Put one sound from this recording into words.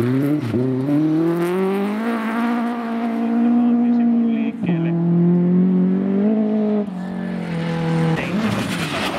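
A rally car engine revs hard and changes pitch through the gears.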